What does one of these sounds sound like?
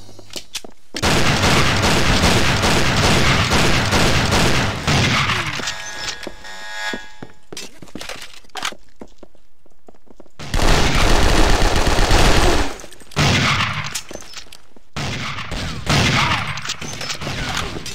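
Gunfire from a video game rattles in quick bursts.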